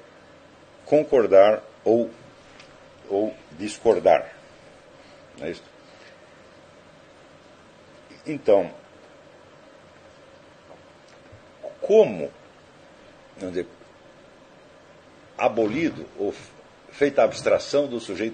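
An elderly man speaks slowly and calmly into a microphone, with long pauses.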